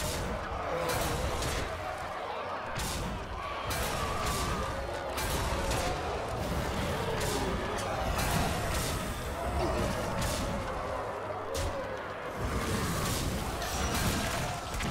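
Cartoon creatures in a card game clash with repeated sharp thuds and bursts of effects.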